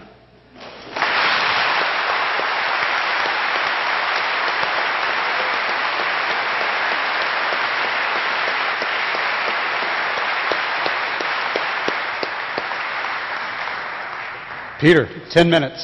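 A large crowd applauds loudly in a big echoing hall.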